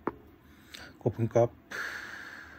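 A man makes a few short, low sounds with his voice close by.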